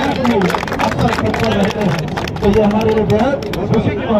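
A group of men clap their hands.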